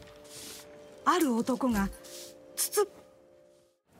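A woman speaks in a pleading voice.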